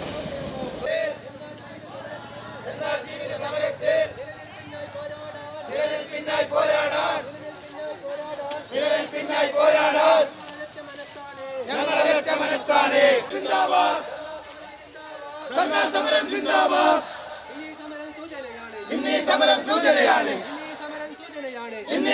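A crowd of men shouts slogans in unison outdoors.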